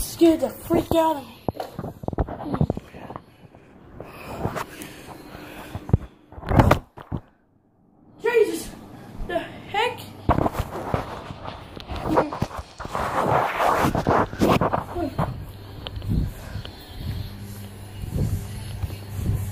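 A young boy talks and shouts close to the microphone.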